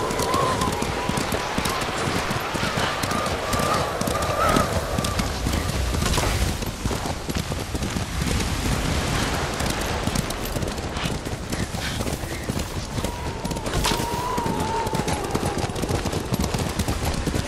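Horses gallop, hooves thudding on snow.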